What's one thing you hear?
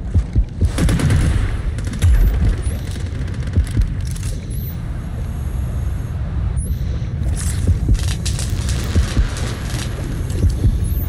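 A deep underwater rumble churns steadily.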